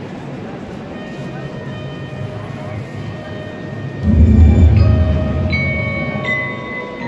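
Wind instruments play sustained notes over loudspeakers.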